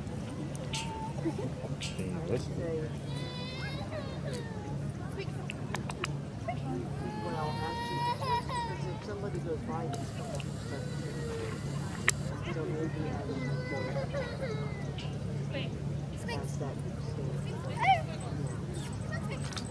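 A young girl calls out commands to a dog nearby.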